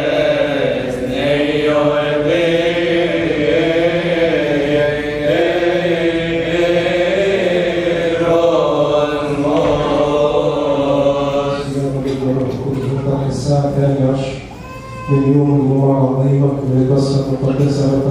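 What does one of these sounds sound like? A group of men chant together in a steady melodic hymn.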